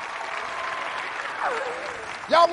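A boy laughs heartily.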